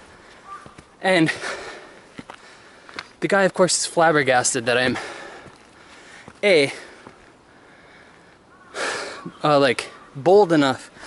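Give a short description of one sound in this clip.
A young man talks close to the microphone in short, animated bursts.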